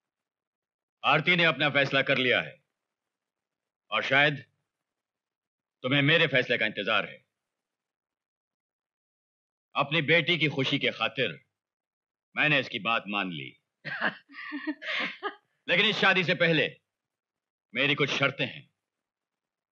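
A middle-aged man speaks firmly and with emotion, close by.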